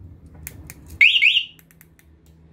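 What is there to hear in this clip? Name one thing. A motorcycle alarm siren gives a short, loud chirp.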